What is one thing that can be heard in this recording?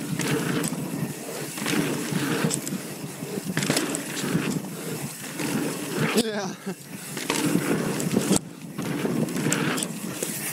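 Bicycle tyres roll and crunch over packed dirt.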